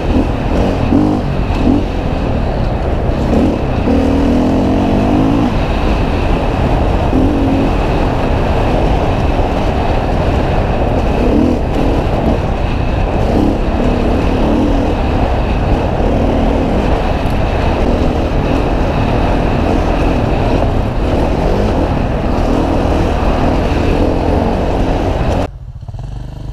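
A motorcycle engine drones and revs up and down close by.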